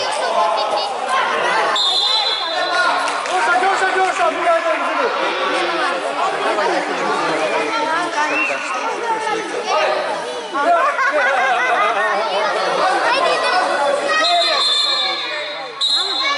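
Young children shout and call out excitedly in a large echoing hall.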